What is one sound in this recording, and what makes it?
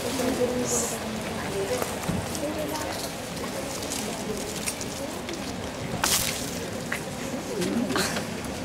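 A crowd of young people and adults murmurs and chatters nearby, outdoors.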